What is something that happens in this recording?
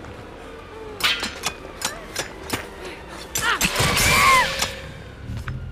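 Sharp metallic clangs and thuds ring out.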